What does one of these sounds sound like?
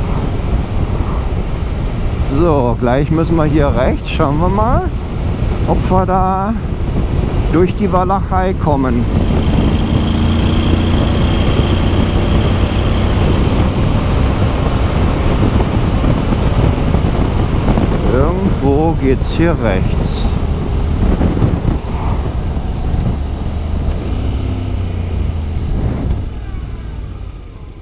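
A motorcycle engine revs up and rises in pitch through several gear changes.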